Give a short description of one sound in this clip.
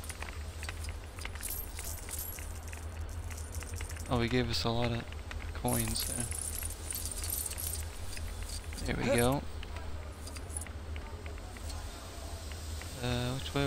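Small coins jingle and clink as they scatter and are picked up.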